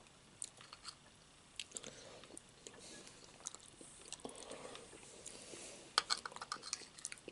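Metal cutlery clinks and scrapes against a plate.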